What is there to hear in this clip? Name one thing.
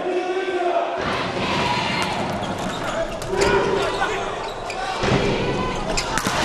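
A crowd cheers and claps in a large echoing hall.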